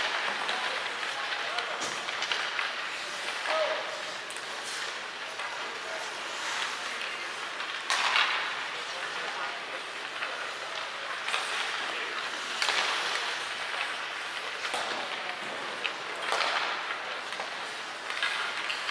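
Hockey sticks clack against a puck and the ice now and then.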